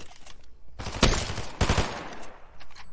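Gunshots crack in a game.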